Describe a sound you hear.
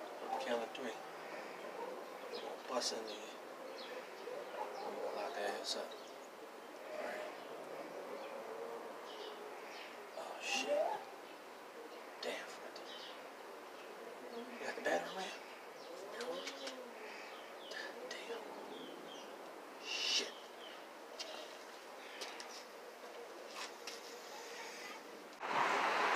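A man talks nearby in a relaxed voice.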